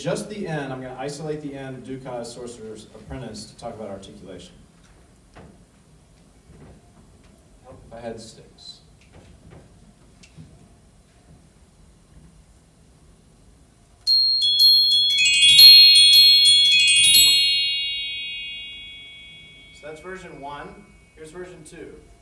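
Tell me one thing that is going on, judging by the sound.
A man speaks calmly through a microphone to an audience.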